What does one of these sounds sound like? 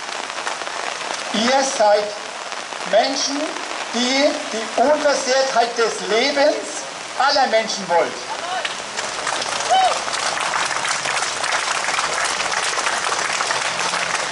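Rain patters steadily on umbrellas.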